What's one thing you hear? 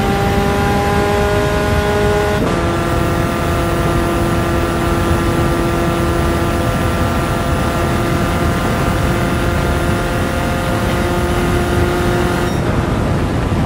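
A racing car engine roars at high revs, shifting up a gear early on.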